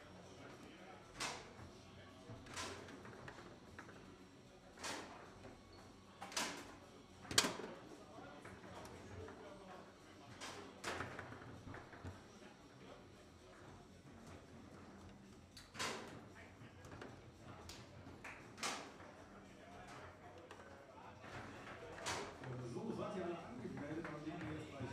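Foosball rods rattle and spin as players play.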